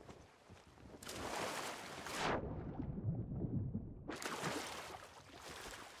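Water splashes loudly as someone plunges into the sea.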